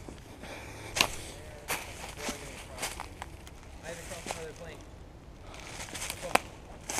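Dry twigs snap underfoot.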